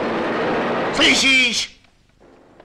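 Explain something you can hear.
An elderly man speaks into a payphone.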